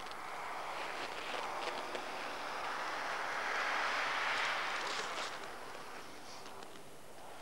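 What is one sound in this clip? A rally car engine roars as it races past on snow, then fades.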